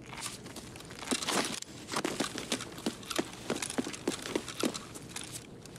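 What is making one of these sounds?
Footsteps crunch over debris.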